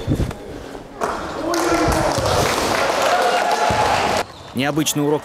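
A crowd of children cheers and shouts.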